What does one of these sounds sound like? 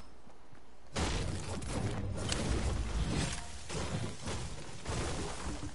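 A pickaxe strikes a tree with thuds.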